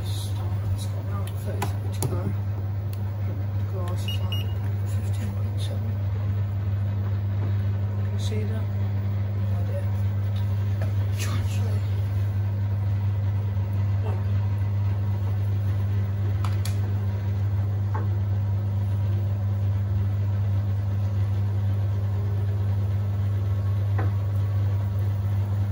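Laundry and water slosh and thump inside a turning drum.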